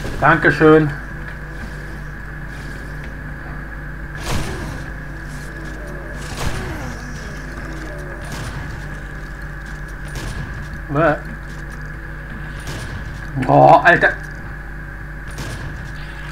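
Shotgun blasts boom one after another.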